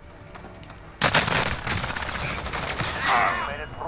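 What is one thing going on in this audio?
Gunfire crackles in rapid, loud bursts.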